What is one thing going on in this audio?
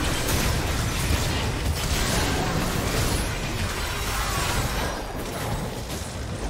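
Game spells and weapon strikes clash and crackle in a fast, busy battle.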